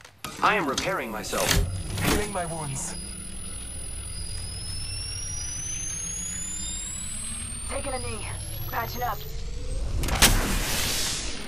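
A game healing kit charges up with a rising electronic whine.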